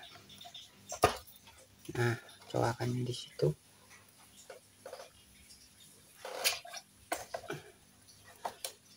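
A small metal part clicks softly as a hand turns it.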